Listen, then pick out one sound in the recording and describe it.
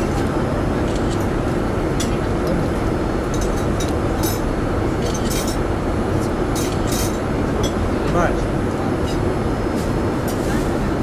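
A steady low engine roar drones throughout.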